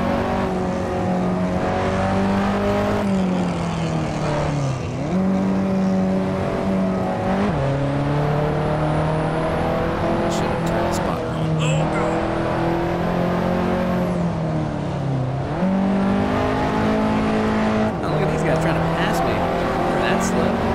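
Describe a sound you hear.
A car engine drones loudly, its pitch rising and dropping as gears shift.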